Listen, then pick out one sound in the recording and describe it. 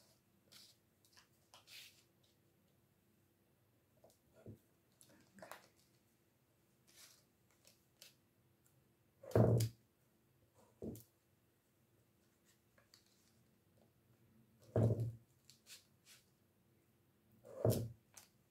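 A knife cuts through soft wax sheets with quiet scrapes and taps.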